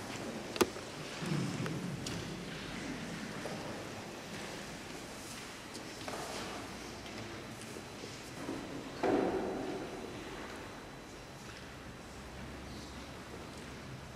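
A harp plays slowly in a large echoing hall.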